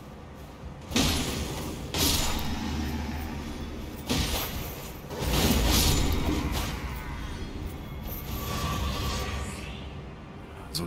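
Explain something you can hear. Magic spells burst and crackle loudly.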